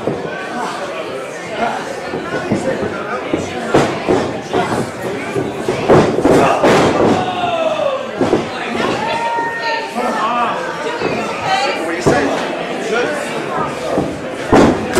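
A crowd of spectators cheers and shouts in an echoing hall.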